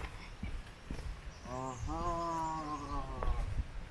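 Footsteps crunch on a dirt path scattered with dry leaves.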